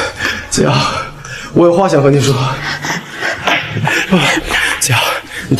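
A young man speaks earnestly, close by.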